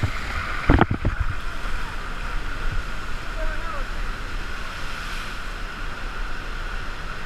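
Rushing water roars steadily.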